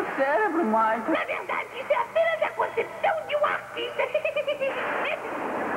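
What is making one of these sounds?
A cartoon character talks cheerfully.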